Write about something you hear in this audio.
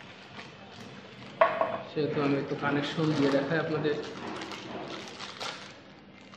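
A plastic bag rustles as it is handled.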